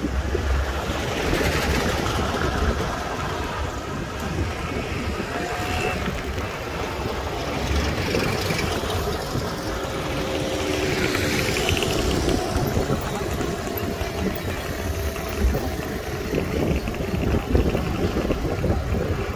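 Cars pass by on the road.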